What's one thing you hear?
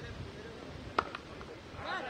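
A cricket bat sharply cracks against a ball.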